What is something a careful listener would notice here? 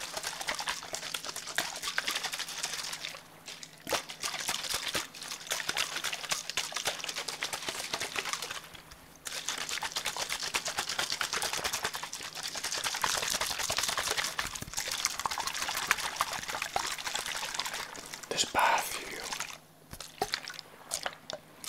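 Fingernails tap and scratch on a plastic bottle close up.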